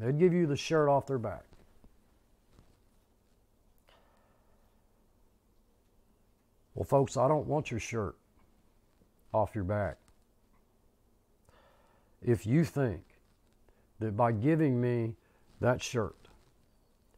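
An older man speaks calmly and close to a microphone, in short bursts with pauses.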